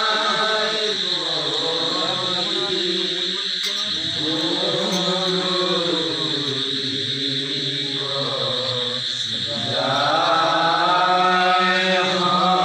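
A group of men sing a chant together in long, drawn-out tones.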